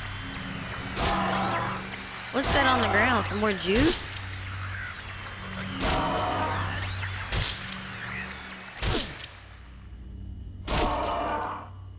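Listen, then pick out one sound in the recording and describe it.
A metal pipe strikes with heavy, sudden thuds.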